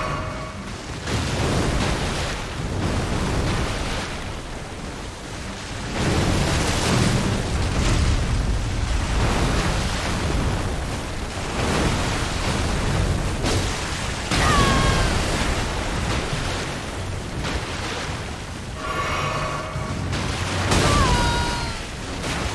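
Water splashes heavily as a huge creature stomps through it.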